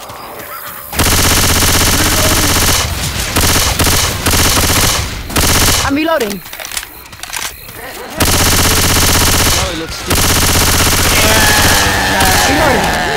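Rapid gunfire rattles loudly in long bursts.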